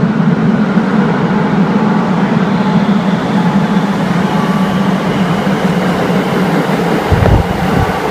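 A train approaches through a tunnel with a growing rumble.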